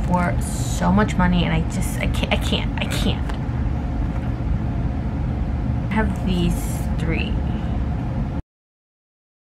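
Plastic sleeves rustle and crinkle as a binder page is turned.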